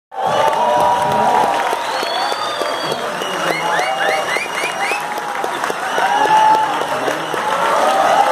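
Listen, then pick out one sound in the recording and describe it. An orchestra plays loudly in a large hall.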